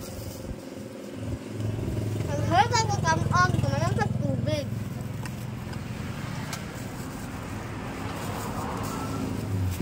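A plastic bag crinkles in a young girl's hands.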